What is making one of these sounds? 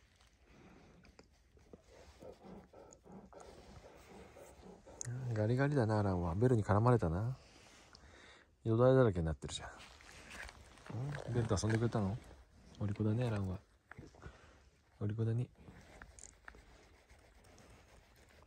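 A hand rubs and pats a dog's thick fur close by.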